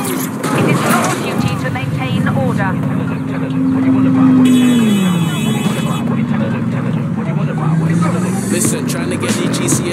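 A motorbike engine hums and revs.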